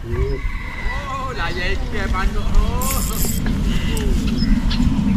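A young boy talks.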